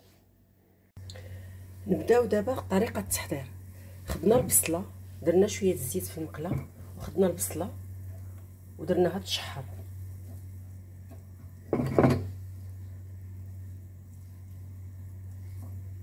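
Onions sizzle softly in a frying pan.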